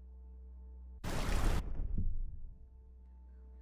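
Water splashes as someone wades through it.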